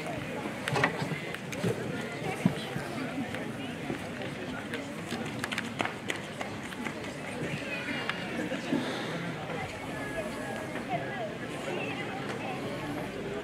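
Young girls chat and laugh nearby outdoors.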